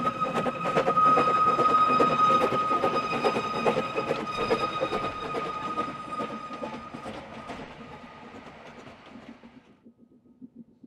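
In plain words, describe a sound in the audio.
Train carriages rumble and squeal loudly along a track close by, then fade away.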